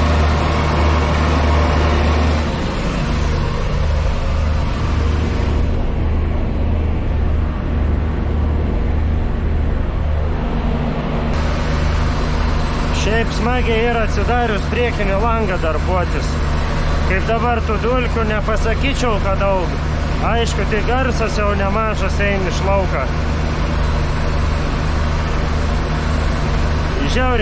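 A baler hums and rattles behind the tractor.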